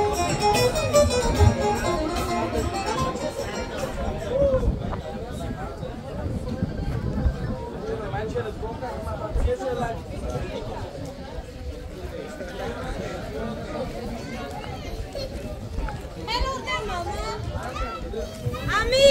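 Music with singing plays loudly over loudspeakers outdoors.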